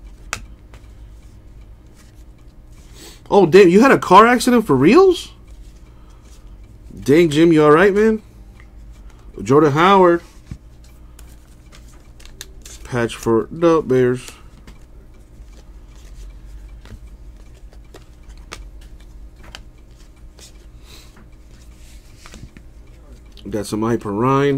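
Trading cards rustle and slide softly against each other in someone's hands.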